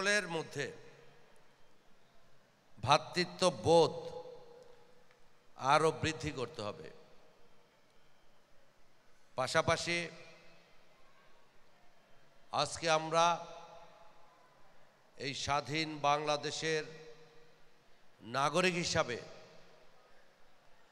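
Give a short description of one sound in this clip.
A middle-aged man speaks slowly and clearly into a microphone in short phrases, with pauses between them.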